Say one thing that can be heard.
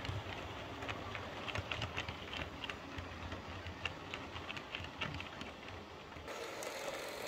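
Model train coaches roll and click over rail joints.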